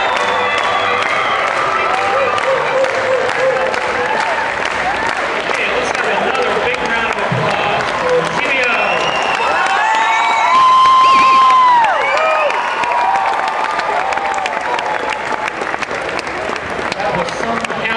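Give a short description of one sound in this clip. Audience members clap their hands.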